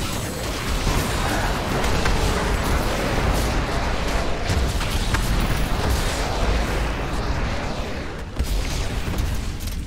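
Electric bolts zap and crackle.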